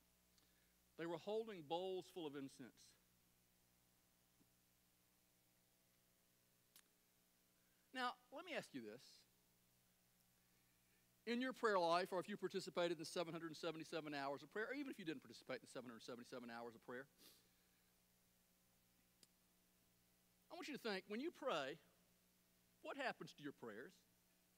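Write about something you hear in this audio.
A man speaks through a microphone in short bursts with pauses.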